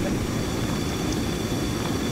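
A helicopter's engine and rotor whir nearby.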